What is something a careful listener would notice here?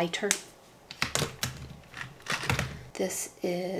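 A plastic wrapper crinkles as it is handled.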